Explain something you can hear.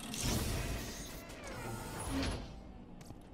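A heavy chest lid swings open with a loud clatter.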